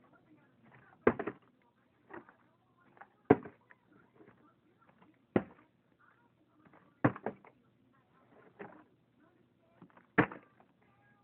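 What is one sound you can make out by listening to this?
A plastic bottle crinkles and thumps in a girl's hands.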